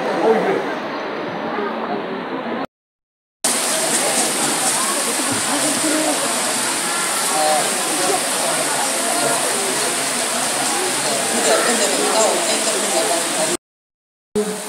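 A crowd murmurs in an open stand.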